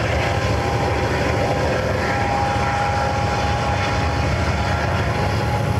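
A freight train's cars rumble and clatter along the tracks.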